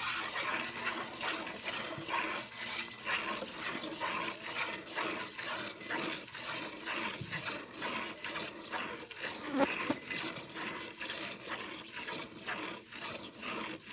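Milk squirts rhythmically into a metal pail.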